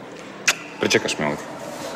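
A man speaks softly and close by.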